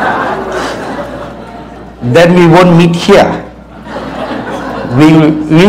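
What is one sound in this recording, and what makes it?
An older man preaches.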